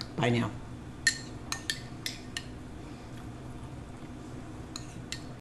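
A spoon clinks against a small ceramic bowl.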